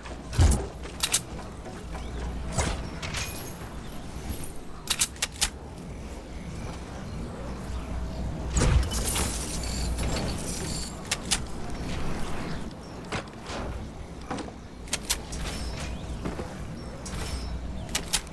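Building pieces snap into place with sharp, repeated clicks.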